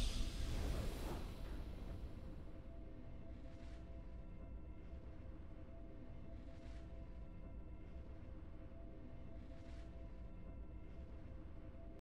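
Triumphant music plays softly and steadily.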